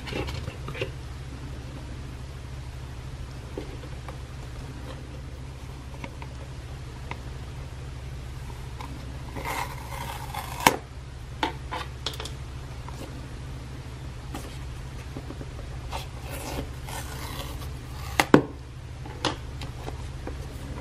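A cardboard box slides and rustles in hands.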